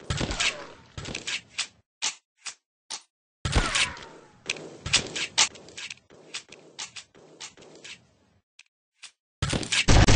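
Paintball guns fire in quick bursts of shots.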